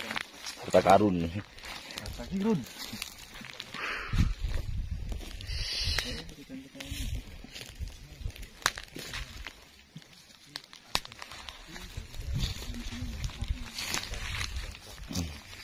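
Footsteps crunch on dry grass and twigs.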